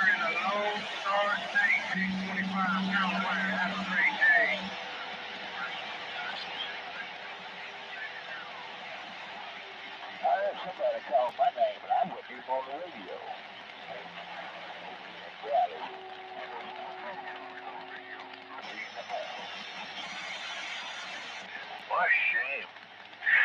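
Warbling, whistling radio signals squeal from a loudspeaker in bursts.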